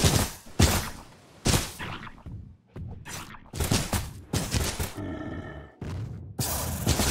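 Magic spells burst and crackle in a fight in a video game.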